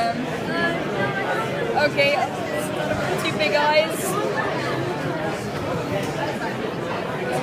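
A crowd of people chatters nearby in a busy, echoing room.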